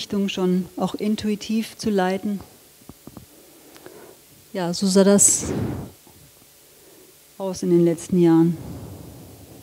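A woman speaks through a microphone in a large echoing hall, in short bursts with pauses.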